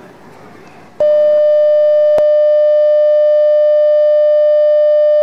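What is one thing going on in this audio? A steady, high test tone sounds loudly.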